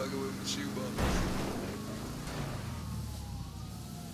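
A car crashes and rolls over with a heavy thud.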